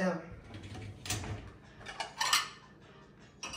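Plates clink against a dishwasher rack.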